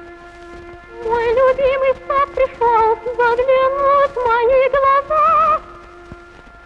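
A young woman sings a high, wavering melody.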